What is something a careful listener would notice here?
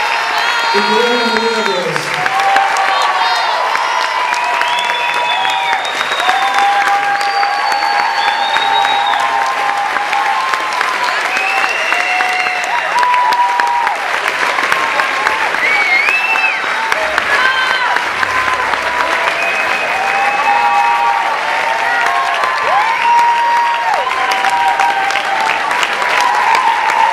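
People in a crowd whistle loudly.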